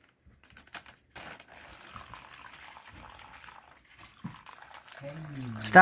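Liquid pours from a bottle into a plastic bag.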